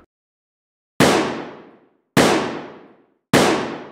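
Three loud gunshots ring out, each echoing away.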